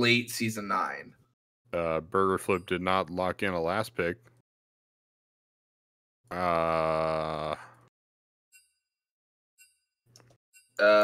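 A young man talks with animation over a headset microphone, as on an online call.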